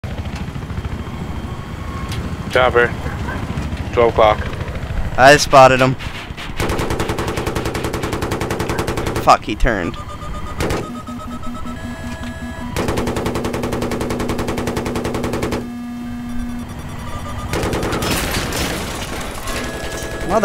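A helicopter's rotor thumps.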